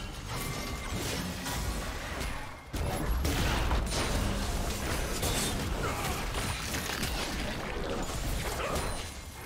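Game weapons clash and strike repeatedly.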